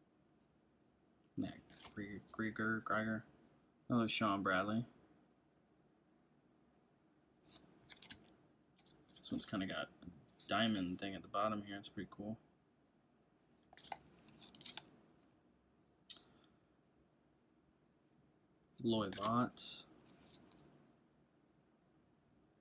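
Trading cards rustle and slide against each other in a pair of hands.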